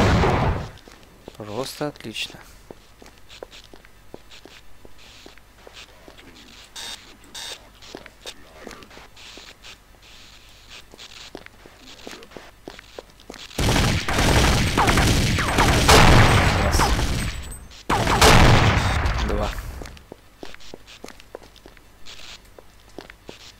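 Footsteps echo on a hard floor in a tunnel.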